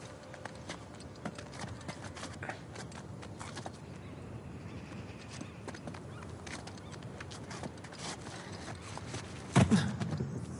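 Hands grip and scrape along a stone ledge in quick, light taps.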